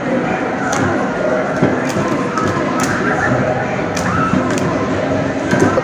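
A child slaps plastic buttons on an arcade game with quick knocks.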